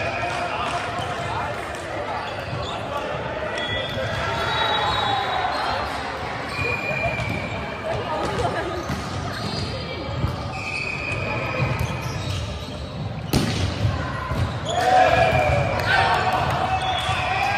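Young men and women call out and chatter across an echoing hall.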